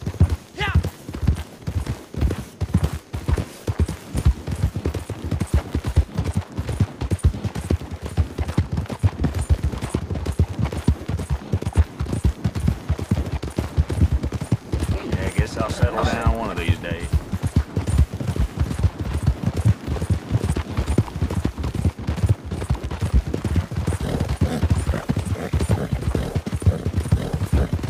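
Horse hooves thud rapidly on the ground.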